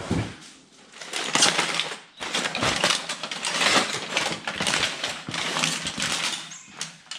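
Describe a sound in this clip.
Foil crinkles and rustles as hands unwrap it.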